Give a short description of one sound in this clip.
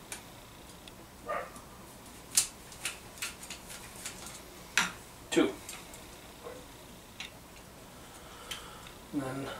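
Metal parts clink and clank as an engine is worked on by hand.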